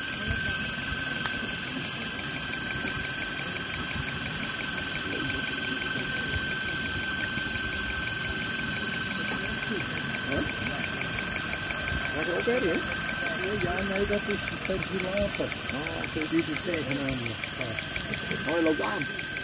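A small model steam engine runs with a fast, steady ticking chuff.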